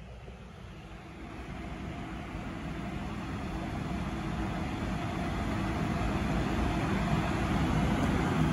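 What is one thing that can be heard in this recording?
A train rolls in with a rising rumble and slows to a stop.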